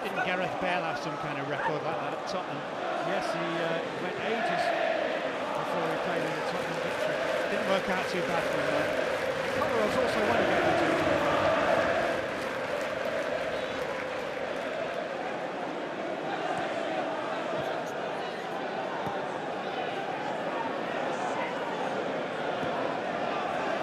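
A large crowd chants and sings loudly in a big open stadium.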